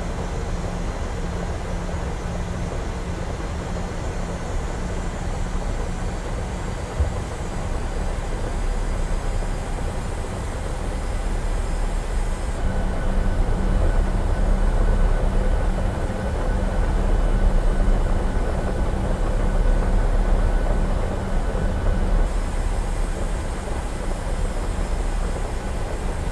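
Rain patters on an aircraft.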